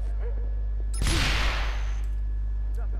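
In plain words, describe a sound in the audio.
A junction box bursts with a loud electrical blast.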